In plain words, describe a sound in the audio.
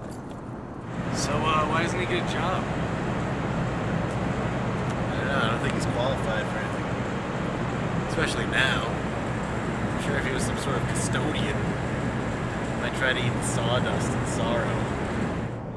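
A young man talks outdoors, close by.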